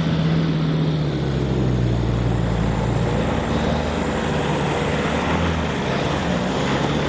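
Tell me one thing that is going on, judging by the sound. Tyres crunch on gravel.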